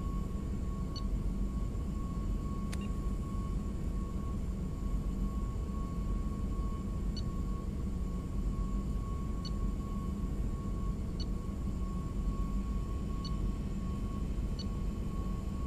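Short soft electronic blips sound each time a menu selection moves.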